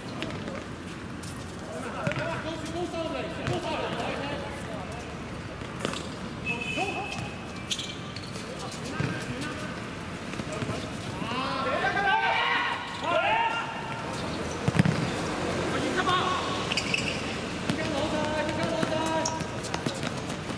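Young men shout to each other across an open outdoor court.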